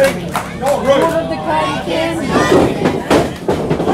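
Feet thud on a wrestling ring's canvas.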